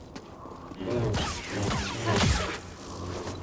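Energy blades clash with sharp sizzling strikes.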